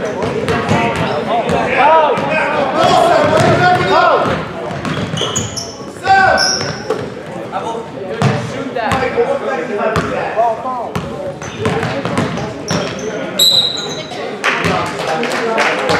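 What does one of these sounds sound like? A basketball bounces repeatedly on a wooden floor.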